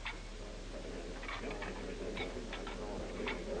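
An elderly man talks gruffly nearby.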